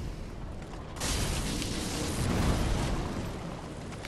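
Flames roar in a burst of fire.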